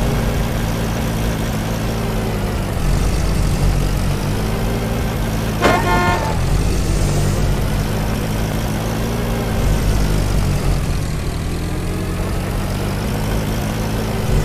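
A jeep engine rumbles steadily.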